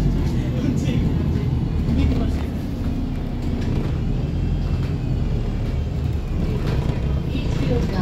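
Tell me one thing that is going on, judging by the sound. The bus body rattles and creaks over the road.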